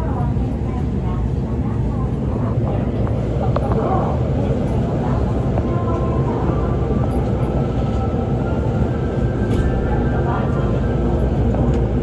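A train rumbles as it pulls away and gathers speed.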